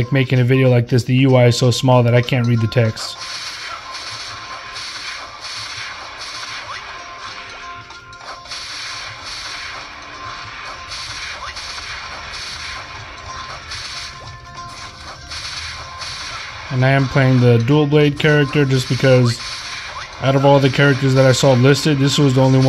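Game sound effects chime and pop rapidly.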